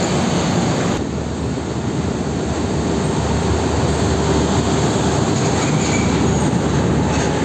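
A diesel flatbed truck passes close by.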